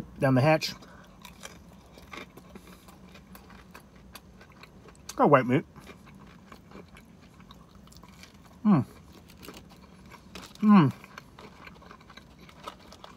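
A man chews crunchy fried food with loud, crisp crunches.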